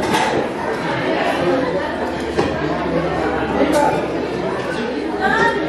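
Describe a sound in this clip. A crowd of men and women chatter and talk over one another nearby.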